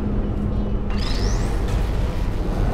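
A device gives a quick rising electric whine as it grabs a block.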